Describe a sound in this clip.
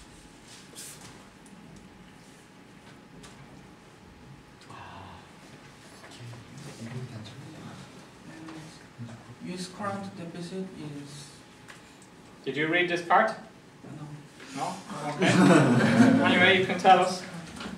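Paper sheets rustle in a man's hands.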